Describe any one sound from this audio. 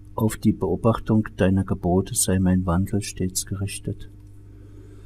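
An elderly man chants prayers aloud, close by.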